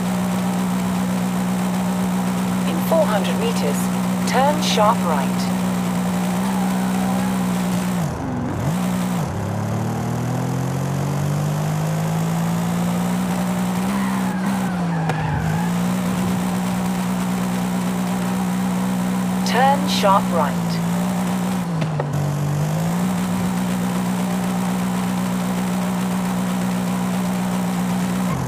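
A car engine hums steadily, dropping and rising in pitch as gears shift.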